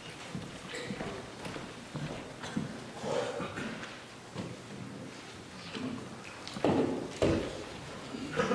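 A woman speaks calmly at a lectern, her voice echoing in a large hall.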